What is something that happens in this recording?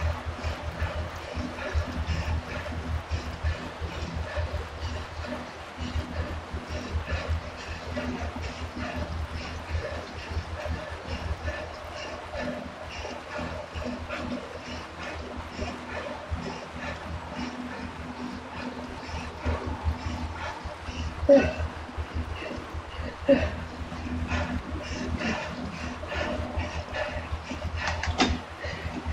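A young woman breathes hard with effort.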